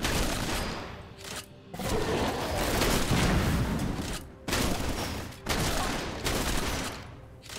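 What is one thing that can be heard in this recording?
Blows and magic effects crackle as a game character fights a creature.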